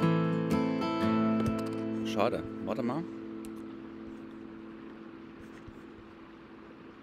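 An acoustic guitar is strummed and rings out, slowly fading.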